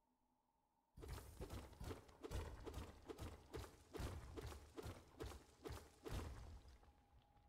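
Heavy blows strike a stone wall again and again, each with a dull rumbling thud.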